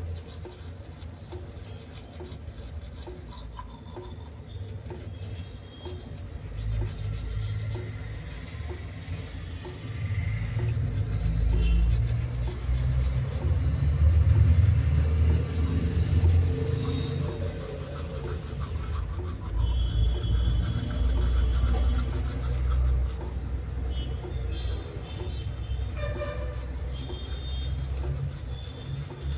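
A toothbrush scrubs against teeth close by.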